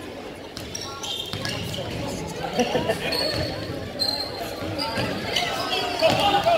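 Spectators talk and call out in a large echoing gym.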